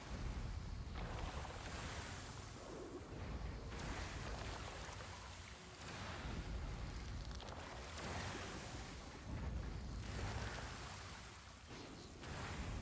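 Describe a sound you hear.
Magic blasts and crackling spell effects burst repeatedly.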